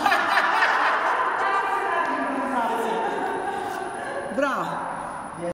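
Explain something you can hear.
A woman sings loudly in an echoing hall.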